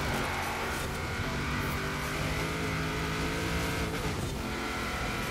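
A rally car engine roars at high revs.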